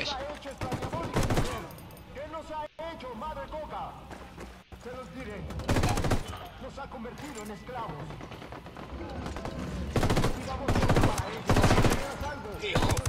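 Rifle gunfire rattles in bursts.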